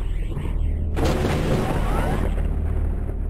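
A heavy stone door grinds open.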